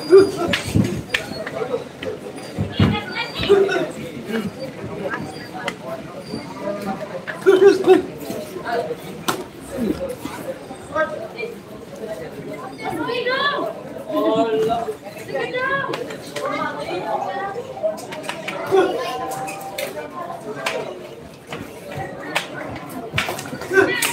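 Boxing gloves thud as punches land on headgear and gloves during sparring.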